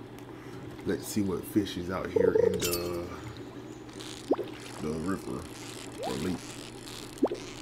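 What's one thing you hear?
A fishing reel whirs and clicks as a fish is reeled in.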